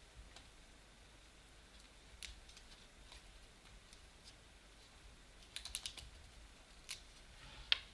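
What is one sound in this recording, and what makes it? Trading cards slide and tap against each other.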